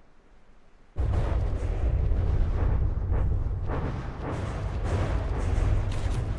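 Explosions rumble and crackle as a ship breaks apart.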